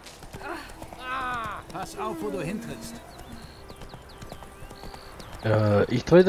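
A horse trots on a dirt path with steady hoofbeats.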